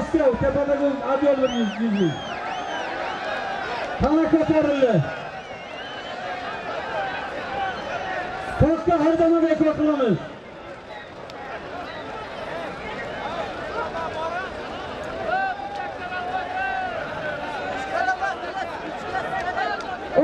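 A large crowd murmurs and shouts outdoors.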